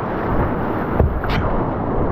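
A paddle splashes into the water.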